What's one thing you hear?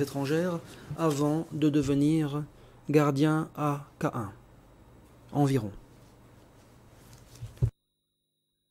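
A man speaks into a microphone, reading out in a formal, measured voice.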